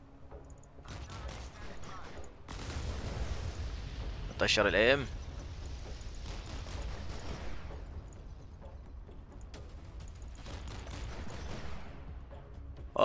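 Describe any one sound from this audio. Heavy guns fire in rapid bursts with explosions.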